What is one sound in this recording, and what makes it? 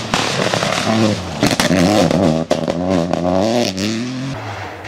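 Gravel sprays and rattles under spinning tyres.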